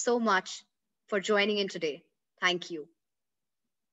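A young woman speaks warmly and clearly into a close microphone.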